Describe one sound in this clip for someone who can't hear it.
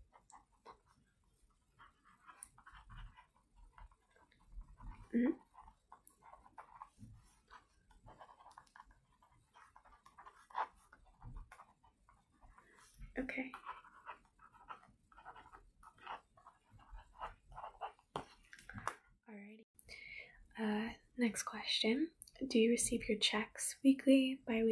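A young woman speaks calmly and close up, heard through a microphone.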